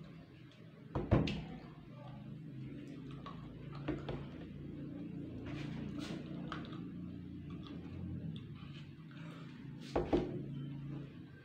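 A plastic water bottle thumps down on a wooden table.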